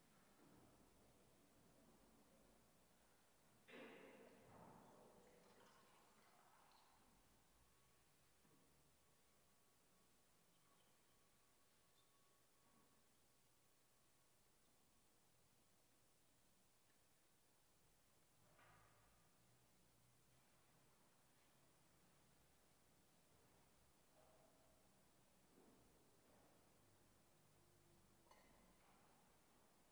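A man speaks quietly and slowly in a large echoing hall.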